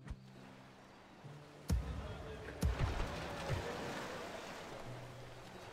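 Soft interface clicks sound as menus open.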